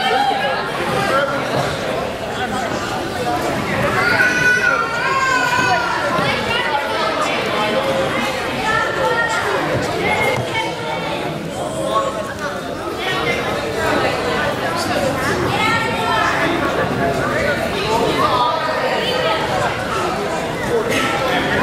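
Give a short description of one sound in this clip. A crowd of people talk and call out in a large echoing hall.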